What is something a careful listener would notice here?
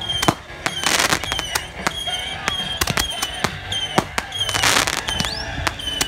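Firework sparks crackle and fizz in bursts.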